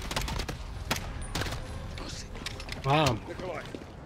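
A pistol clicks as it is reloaded.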